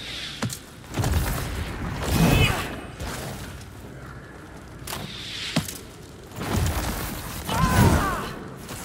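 A magic blast crackles and booms.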